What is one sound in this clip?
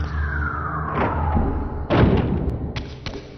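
A heavy door swings open with a rumbling whoosh.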